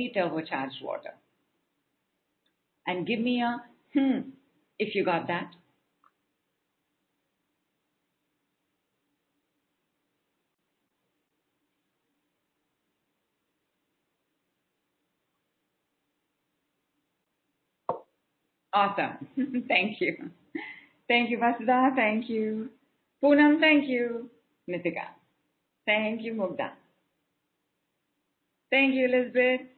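A woman speaks calmly and warmly into a microphone, with pauses.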